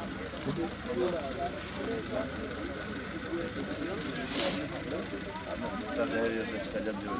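A crowd of men chatters outdoors, close by.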